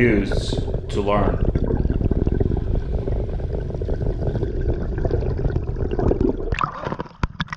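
Water rushes and bubbles loudly underwater.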